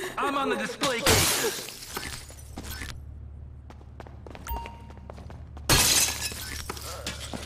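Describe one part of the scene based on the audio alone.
Glass shatters loudly as a display case is smashed.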